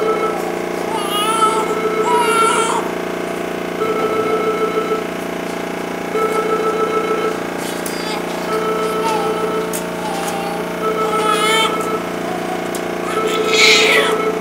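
A newborn baby cries loudly nearby.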